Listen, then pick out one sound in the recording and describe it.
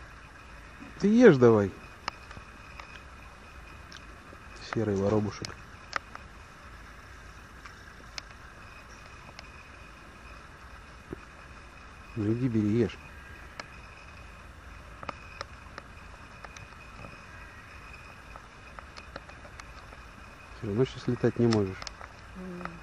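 A jackdaw calls with short, sharp caws now and then.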